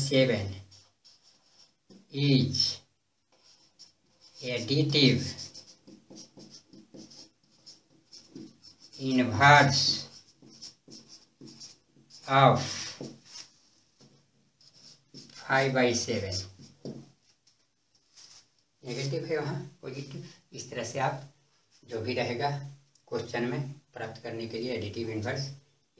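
An elderly man speaks in a calm, explaining manner.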